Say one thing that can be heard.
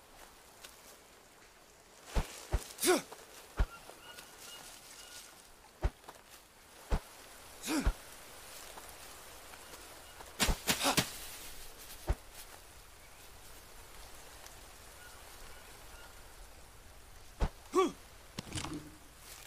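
Leaves and fronds rustle as someone pushes through dense plants.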